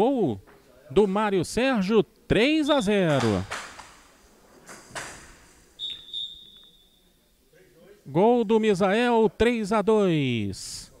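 A paddle knocks sharply against a ball.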